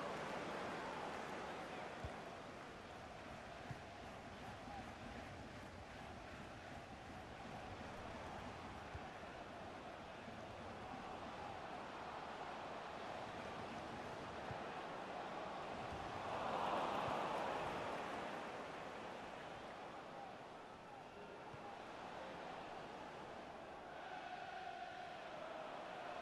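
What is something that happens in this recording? A stadium crowd murmurs and roars, swelling briefly.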